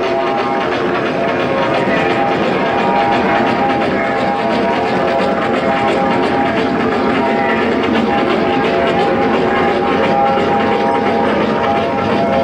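A crowd of people chatters loudly in a noisy, crowded room.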